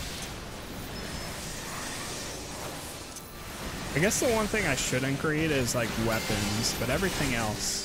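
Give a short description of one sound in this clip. Magic blasts crackle and boom during a fantasy battle.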